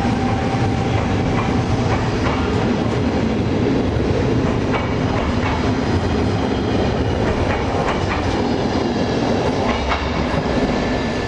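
A train rumbles and clatters loudly as it pulls away close by.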